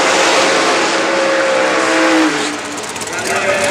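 A dragster's engine roars through a tyre-smoking burnout.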